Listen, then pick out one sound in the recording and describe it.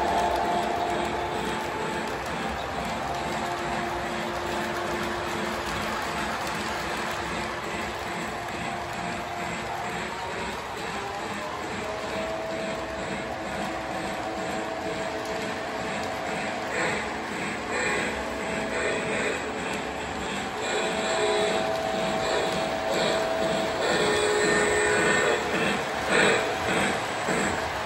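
A model train clatters along its track with a steady rhythmic clicking of wheels.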